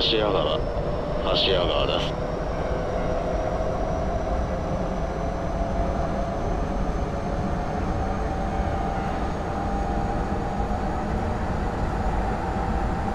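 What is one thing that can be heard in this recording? A train's electric motor whines steadily, rising slowly in pitch as it speeds up.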